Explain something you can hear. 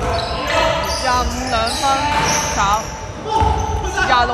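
Basketball shoes squeak on a hardwood court in an echoing sports hall.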